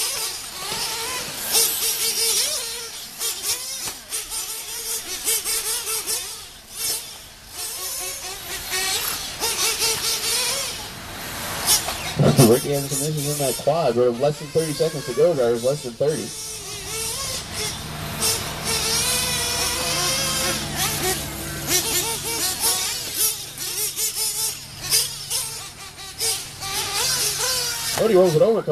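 Small electric motors of radio-controlled cars whine at high pitch, rising and falling as the cars speed up and slow down.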